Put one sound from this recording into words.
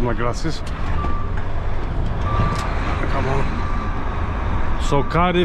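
A heavy truck engine rumbles steadily from inside the cab.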